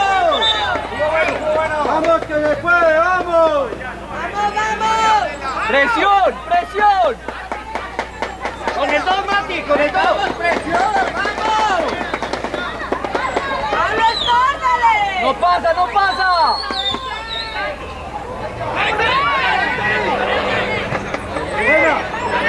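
Children shout and call out outdoors.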